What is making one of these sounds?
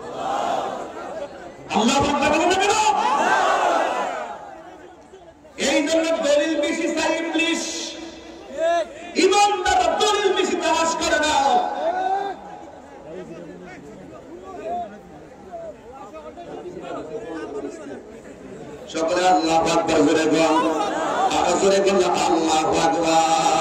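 A man preaches forcefully into a microphone, with loud, echoing bursts of speech.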